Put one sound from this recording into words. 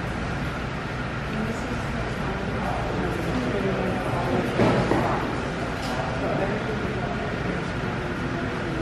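A crowd of adults chatters nearby in a large echoing room.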